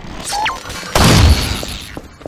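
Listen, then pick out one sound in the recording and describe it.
A creature bursts apart with a loud wet splatter.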